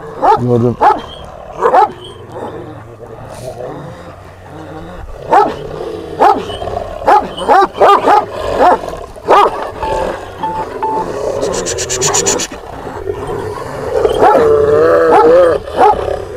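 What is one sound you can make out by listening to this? A large dog barks deeply and loudly, again and again.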